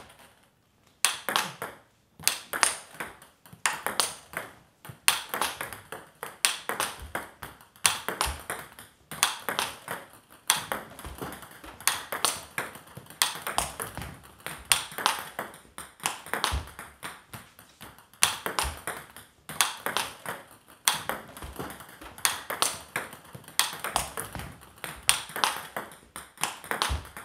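A table tennis ball clicks rapidly back and forth off paddles and the table.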